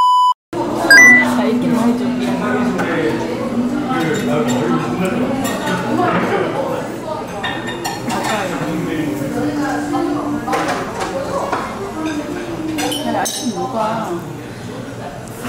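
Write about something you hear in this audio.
A group of young women sing together close by.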